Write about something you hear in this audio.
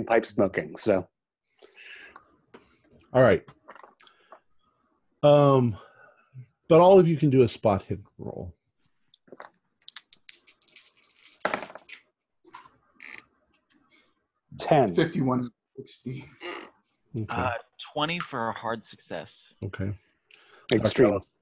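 Several men talk in turn over an online call, with animation.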